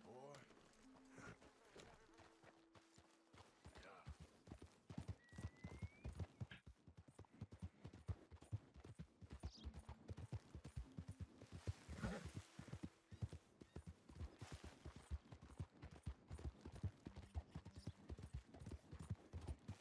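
A horse's hooves clop steadily on a dirt trail.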